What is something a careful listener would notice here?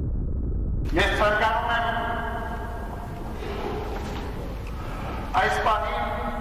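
A priest chants in a reverberant hall.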